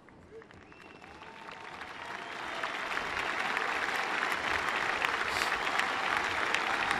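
A large crowd applauds loudly.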